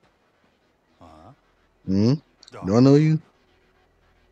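A man answers loudly in surprise.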